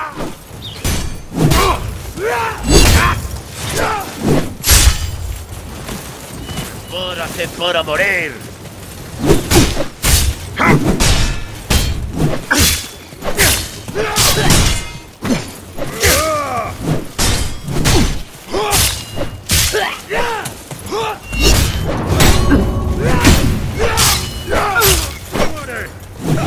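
Men grunt and shout as they fight.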